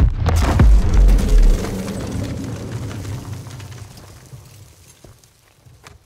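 A heavy explosion booms outside and its rumble slowly fades.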